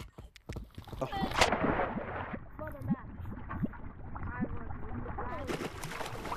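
Lava bubbles and hisses.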